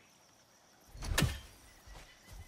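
A heavy axe swings through the air with a whoosh.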